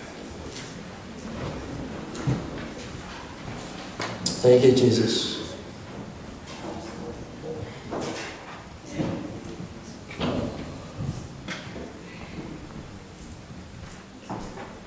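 A man speaks slowly and solemnly into a microphone, heard through a loudspeaker in an echoing hall.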